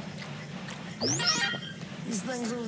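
A short rising electronic chime rings out.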